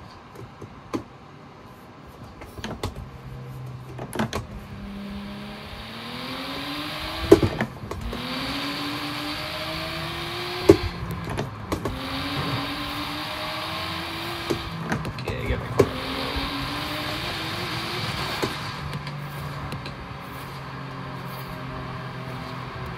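A sports car engine roars and revs up repeatedly through the gears.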